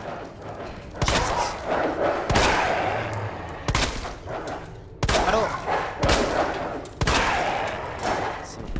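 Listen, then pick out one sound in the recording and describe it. Pistol shots ring out one after another with echoing tails.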